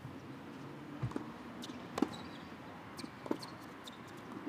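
A tennis ball is hit hard with a racket, back and forth.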